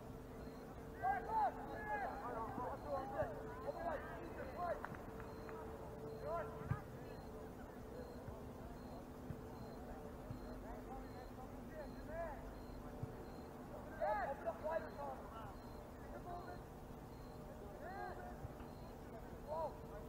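Players shout to each other across an open field at a distance.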